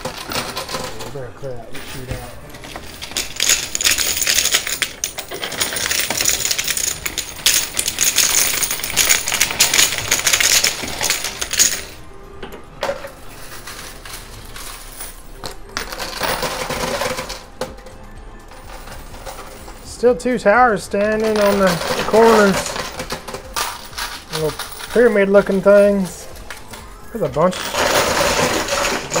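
Coins clink and clatter as a pusher shoves them along.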